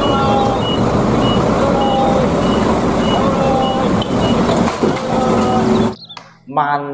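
A truck's reversing alarm beeps repeatedly.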